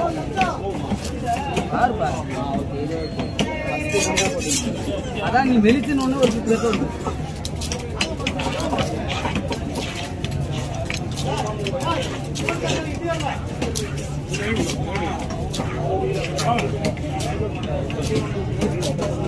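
A heavy knife chops through fish on a wooden block with sharp thuds.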